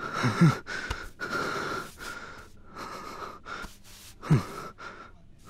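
A man groans in distress close by.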